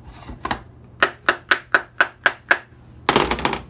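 Small plastic pieces click into place.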